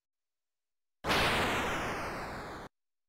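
A harsh electronic hiss bursts from a machine.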